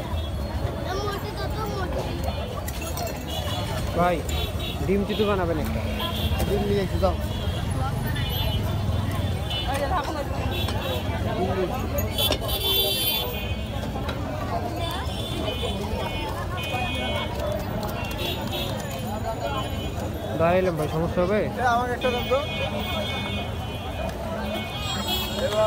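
A busy street crowd chatters all around.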